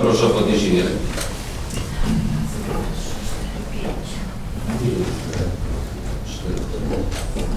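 People murmur quietly in the background.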